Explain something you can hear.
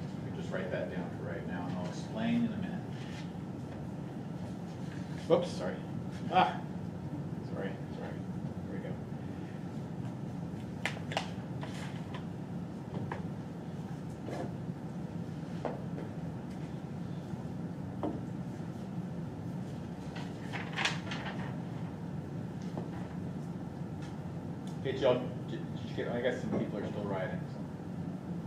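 A man lectures calmly, heard through a microphone.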